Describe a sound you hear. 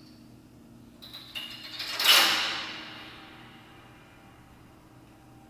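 Piano strings are struck inside the piano with a bright crash that rings out and slowly fades in a large echoing hall.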